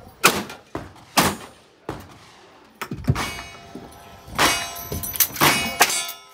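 A rifle lever clacks as it is worked.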